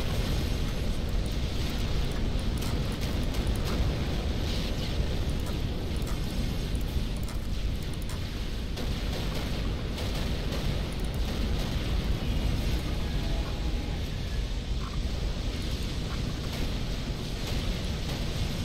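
Gunfire and explosions rumble on through a battle.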